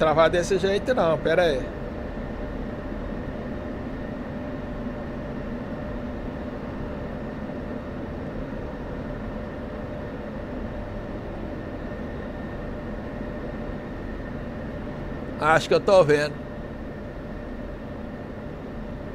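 A fighter jet engine hums steadily, heard from inside the cockpit.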